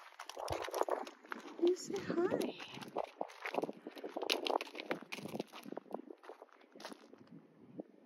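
A horse's hooves crunch on gravel and dry brush.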